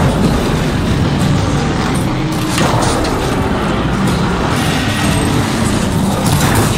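A large mechanical beast whirs and clanks nearby.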